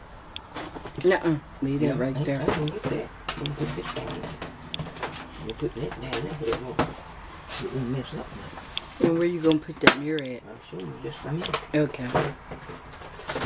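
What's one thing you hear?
An elderly man speaks calmly close by.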